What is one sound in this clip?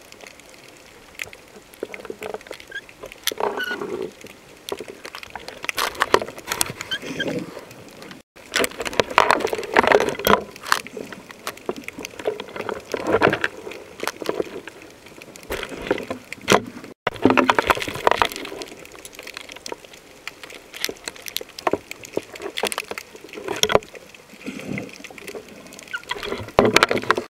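Water swishes and gurgles in muffled bursts underwater.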